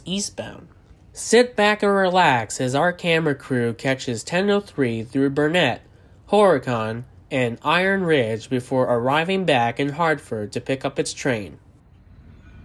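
A man talks calmly close to the microphone.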